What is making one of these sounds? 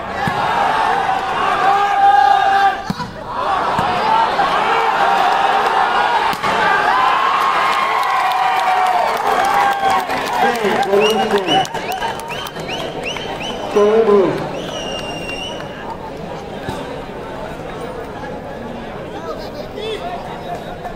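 Men shout excitedly nearby.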